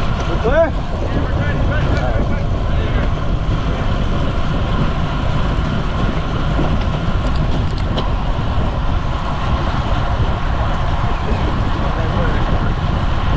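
Wind rushes loudly past the microphone of a moving bicycle.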